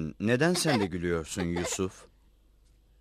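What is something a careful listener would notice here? A young boy speaks cheerfully.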